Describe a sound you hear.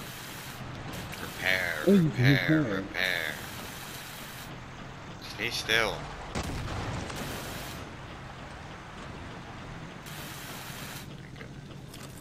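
A welding torch hisses steadily with crackling sparks.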